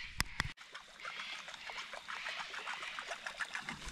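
A fish splashes and thrashes at the water's surface.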